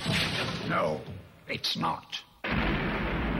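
An elderly man speaks in a low, menacing voice.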